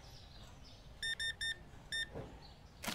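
An electronic checkout scanner beeps several times in quick succession.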